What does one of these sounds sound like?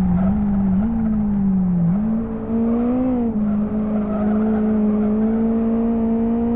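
A racing car engine drones steadily, its pitch rising and falling as it shifts gears.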